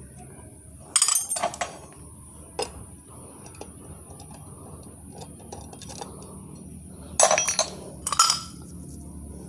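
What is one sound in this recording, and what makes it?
Metal parts clink and rattle close by as an engine is handled.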